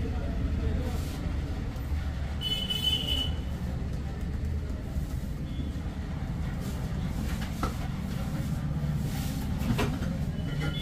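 Hands slap and pat rhythmically on a man's back.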